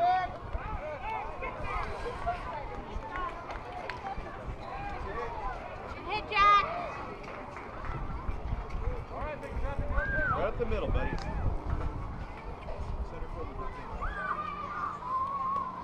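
Young boys shout and call out across an open field.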